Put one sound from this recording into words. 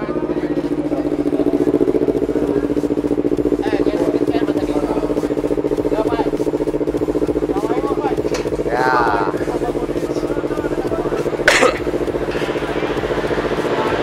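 A motorcycle engine idles steadily close by.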